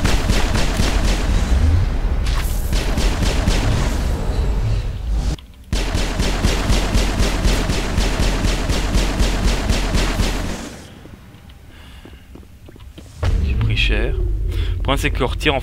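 An energy blast crackles and booms.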